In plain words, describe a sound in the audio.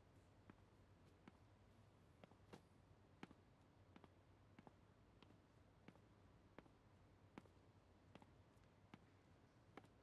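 Hard-soled shoes click faintly on a hard floor.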